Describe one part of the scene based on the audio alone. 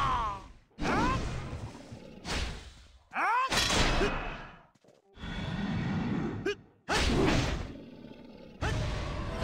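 Fantasy magic spells whoosh and burst again and again in quick bursts.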